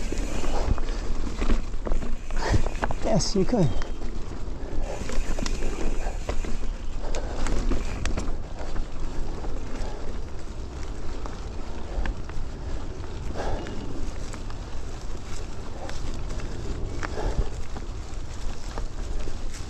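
Bicycle tyres roll and crunch over a rocky, leaf-covered dirt trail.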